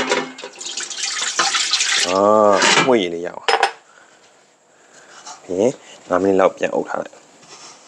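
A cloth rubs across a metal lid.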